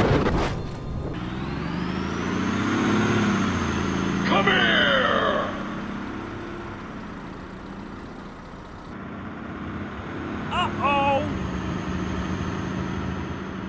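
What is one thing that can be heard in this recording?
A bus engine hums as it drives along a road.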